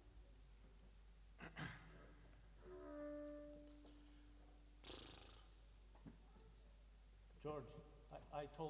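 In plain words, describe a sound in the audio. A double bass plays plucked notes.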